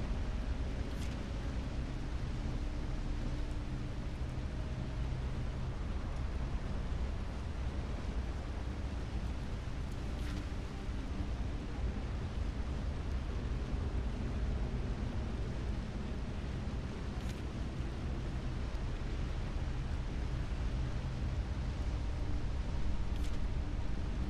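A paper page turns with a brief rustle.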